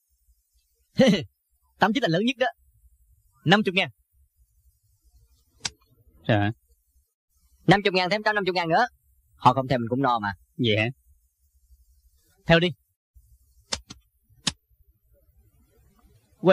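A man in a card game laughs and talks boastfully.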